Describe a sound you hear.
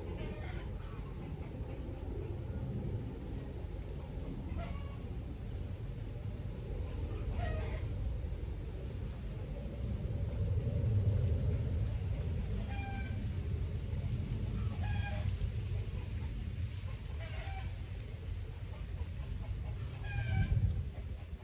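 A river flows gently nearby.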